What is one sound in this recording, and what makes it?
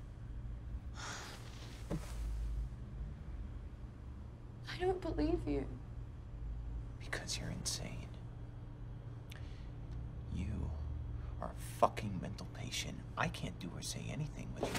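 A young woman speaks softly and tearfully, close by.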